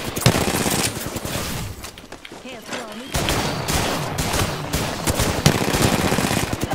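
Video game gunshots fire in rapid bursts.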